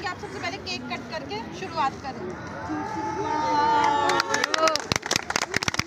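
A crowd of young people chatter and cheer nearby.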